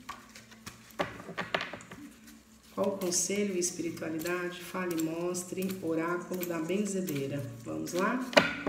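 Playing cards shuffle and flap softly in hands.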